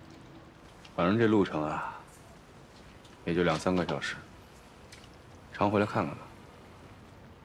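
A man speaks gently and slowly nearby.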